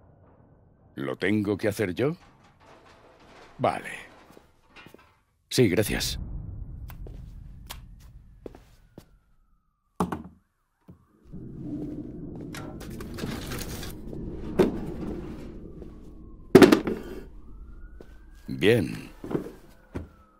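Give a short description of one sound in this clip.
A man speaks to the listener at close range.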